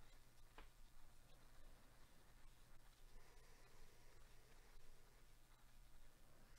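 Trading cards shuffle and flick softly against each other.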